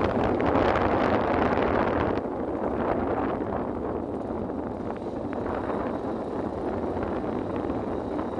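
Wind rushes past a moving motorbike.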